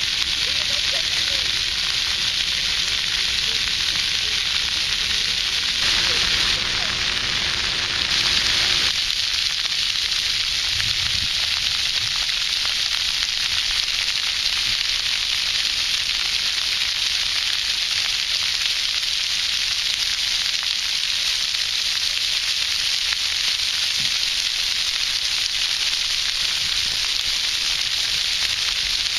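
Fountain jets spray and splash steadily onto wet pavement outdoors.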